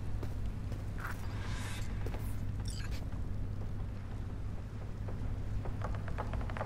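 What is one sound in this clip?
Bedsheets rustle softly as a body settles onto a bed.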